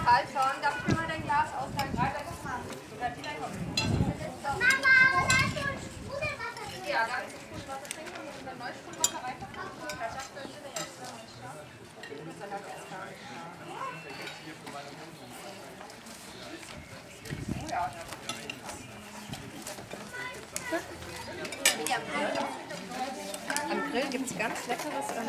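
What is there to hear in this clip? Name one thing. Several men and women chat and talk over each other outdoors.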